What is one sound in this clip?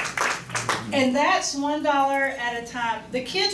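A woman speaks cheerfully into a microphone over a loudspeaker.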